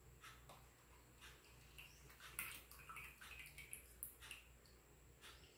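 Liquid pours in a thin stream and trickles into a small container.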